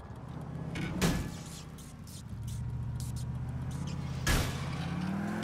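A car slams into a metal pole with a loud bang.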